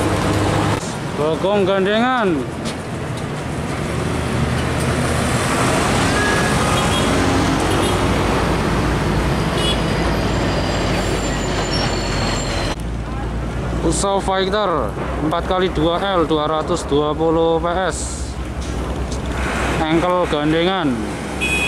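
A truck horn blares a rising and falling tune.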